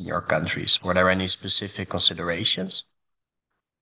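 A young man speaks calmly into a microphone over an online call.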